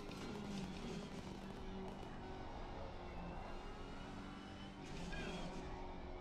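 A race car engine roars steadily at high revs through a game.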